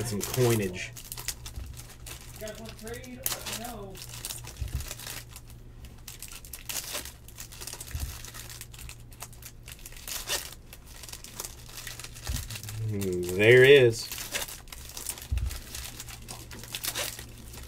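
Foil wrappers crinkle and tear as card packs are ripped open.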